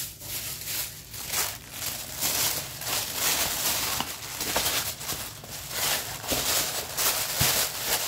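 Tissue paper crinkles and rustles under a hand.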